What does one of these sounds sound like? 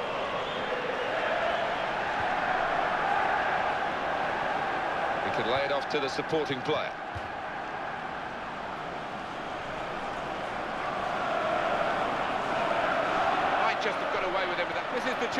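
A large stadium crowd roars and chants steadily throughout.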